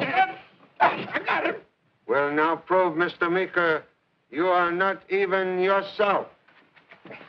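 A middle-aged man speaks urgently, close by.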